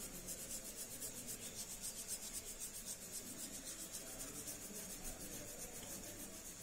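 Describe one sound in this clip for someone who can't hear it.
A felt-tip marker scratches rapidly back and forth on paper.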